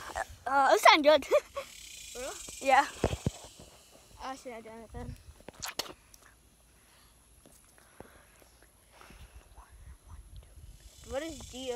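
A young boy talks animatedly, close to a phone's microphone.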